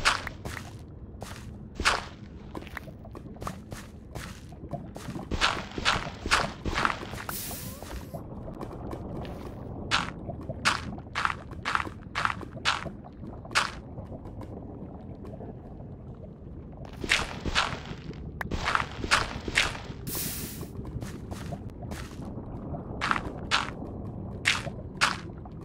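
A shovel scrapes and crunches through gravel and stone in quick repeated strokes.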